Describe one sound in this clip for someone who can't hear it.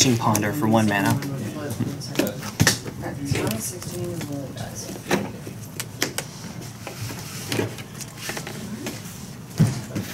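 Playing cards tap and slap onto a table.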